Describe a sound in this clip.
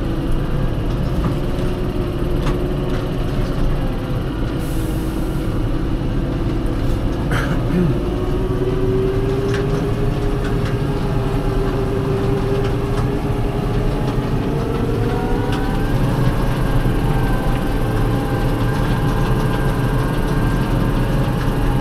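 The cab rattles and knocks over bumpy ground.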